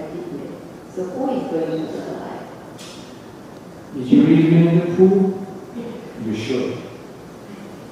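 A man speaks calmly into a microphone in a softly echoing room.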